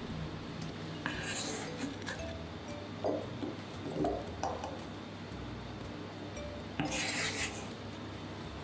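A knife blade scrapes across a cutting board.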